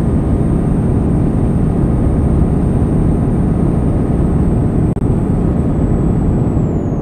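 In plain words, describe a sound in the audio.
A truck engine rumbles steadily while driving on a highway.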